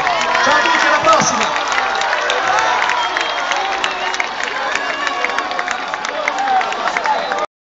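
A large crowd cheers and sings loudly outdoors.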